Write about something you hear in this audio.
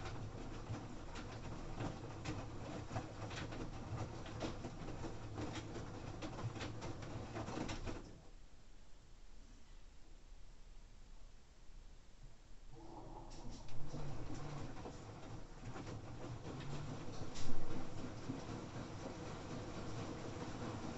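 A washing machine drum turns with a low rumbling hum.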